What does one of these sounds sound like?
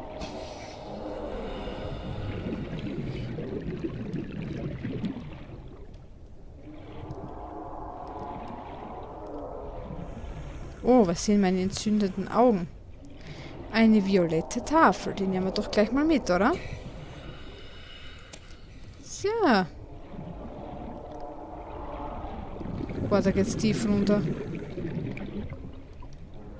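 Air bubbles burble and gurgle underwater.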